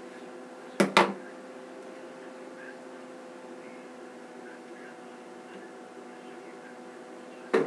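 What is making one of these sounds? Fingers rustle softly through hair.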